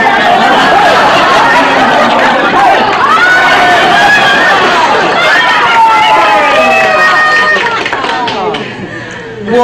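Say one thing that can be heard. A studio audience laughs and cheers.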